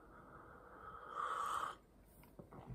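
A man slurps from a mug close by.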